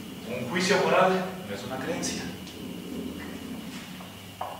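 A middle-aged man speaks calmly and clearly nearby.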